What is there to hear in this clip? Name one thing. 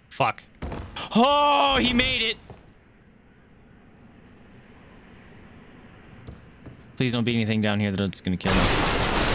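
A young man exclaims loudly and talks through a microphone.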